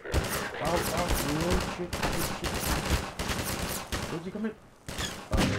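A pistol fires several times in quick succession.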